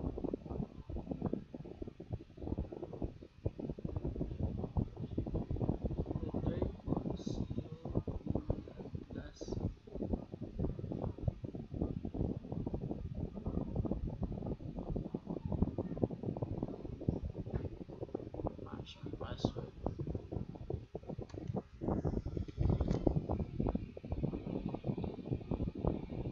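A young man speaks calmly and steadily into a close, muffled microphone.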